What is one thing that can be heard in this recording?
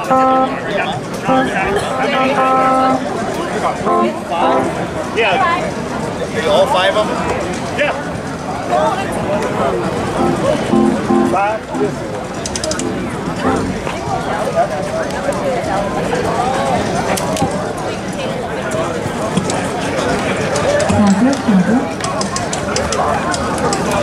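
A live band plays music through loudspeakers outdoors.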